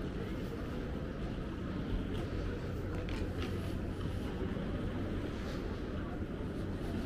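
A bus engine idles at a distance with a low, steady rumble.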